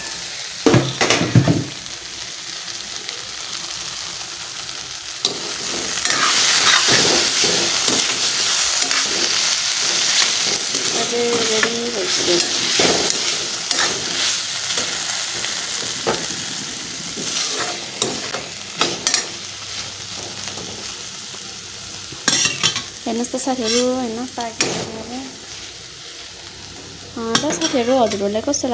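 A metal spoon scrapes and stirs vegetables in a steel wok.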